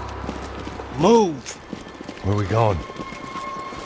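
A man shouts orders urgently.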